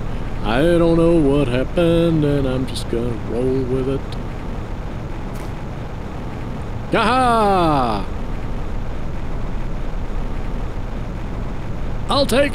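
A young man talks animatedly and exclaims close to a microphone.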